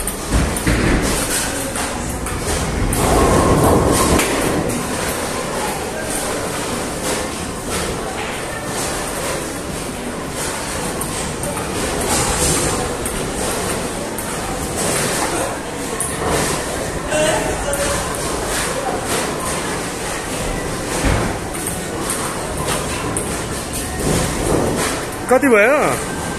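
A ping-pong ball clicks back and forth on paddles and a table.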